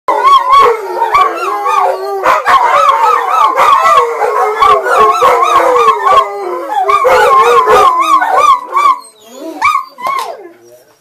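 Dogs howl and bay loudly with wavering voices.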